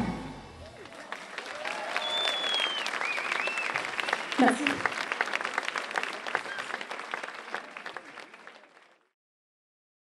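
A large crowd claps and cheers loudly, then fades out.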